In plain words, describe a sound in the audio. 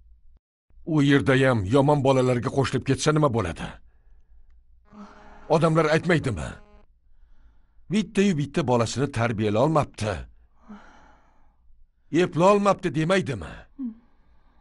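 A middle-aged man speaks firmly and at length, close by.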